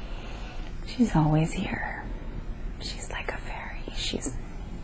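A young woman moans and mumbles sleepily, close by.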